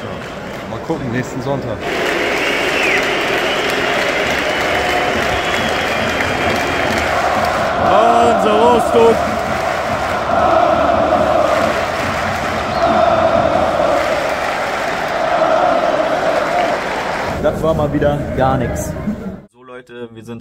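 A crowd chants loudly outdoors.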